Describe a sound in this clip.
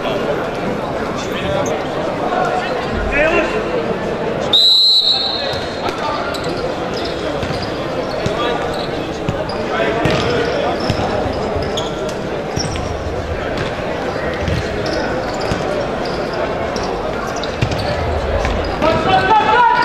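A ball thumps as it is kicked.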